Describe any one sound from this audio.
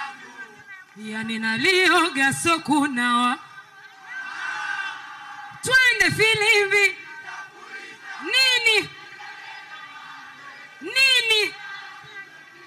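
A young woman sings loudly through loudspeakers.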